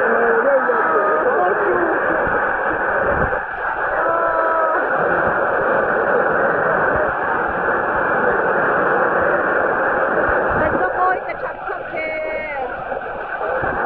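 Men in the crowd sing and shout nearby.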